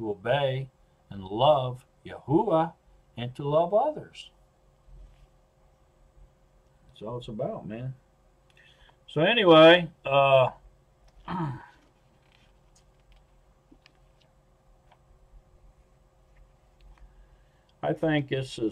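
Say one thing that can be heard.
An older man speaks calmly into a microphone in short bursts, with pauses.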